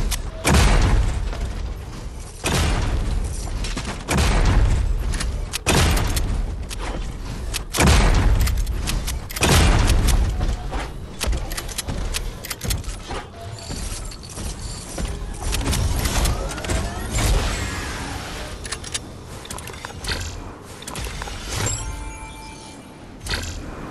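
Loud game sound effects boom and crash.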